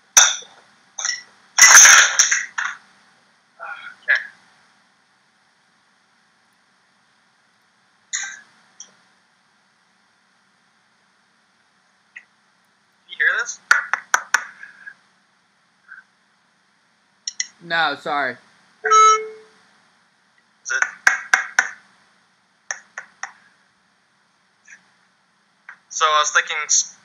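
A man speaks calmly in short bursts, close to a computer microphone.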